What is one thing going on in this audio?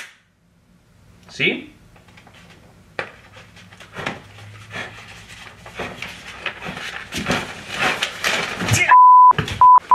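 Electric sparks crackle and snap in short bursts.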